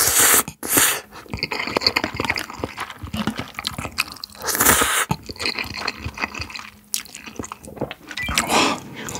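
A young man chews food wetly, close to a microphone.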